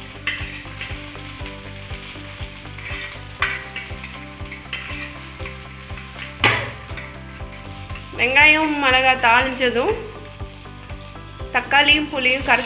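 Oil sizzles in a pot.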